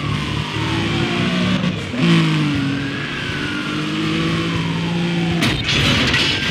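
A racing car engine roars and revs up through the gears.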